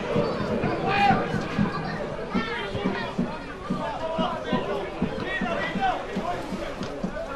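A small crowd murmurs in an open stadium.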